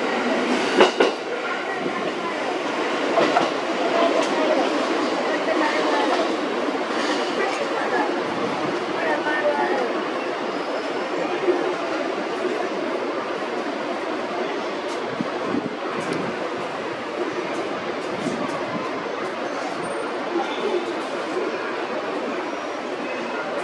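A train rumbles slowly along the tracks, drawing nearer.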